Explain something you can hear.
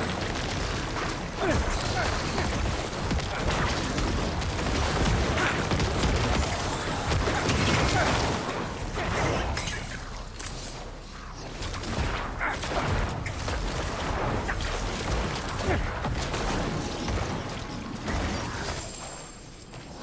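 Loud game combat sounds of blasts and impacts clash throughout.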